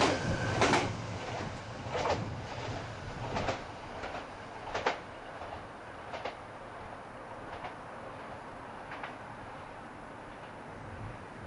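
A train approaches along the tracks with a low rumble.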